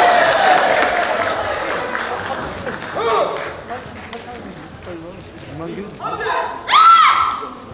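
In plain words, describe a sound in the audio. Fighters shout sharp, drawn-out cries that echo through a large hall.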